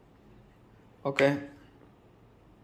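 A folding phone snaps shut with a click.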